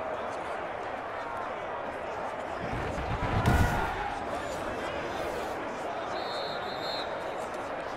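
A large stadium crowd cheers steadily.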